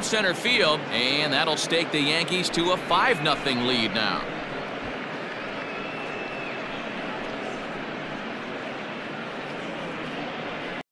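A large stadium crowd cheers and murmurs steadily.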